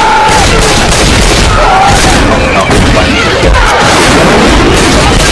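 Zombies shriek and snarl close by.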